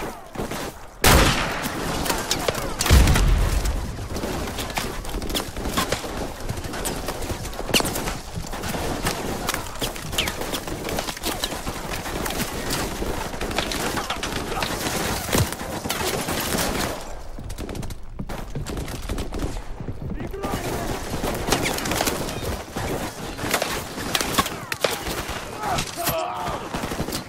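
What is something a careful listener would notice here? Gunshots crack and boom repeatedly, with short echoes.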